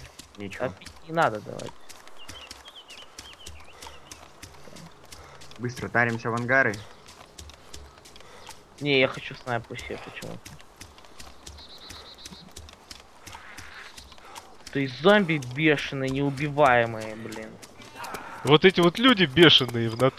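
Footsteps thud and rustle quickly through grass.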